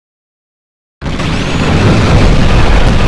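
A vehicle engine roars.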